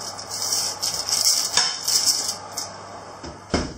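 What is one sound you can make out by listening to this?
Baking paper crinkles and rustles close by.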